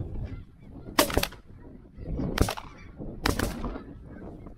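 Shotguns fire several loud blasts in quick succession.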